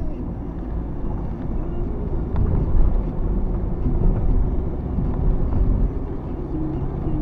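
Tyres hiss over a wet road.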